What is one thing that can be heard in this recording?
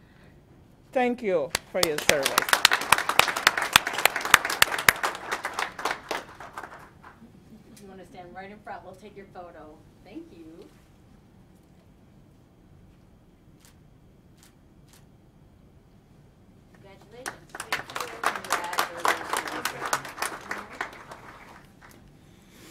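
A group of people claps and cheers.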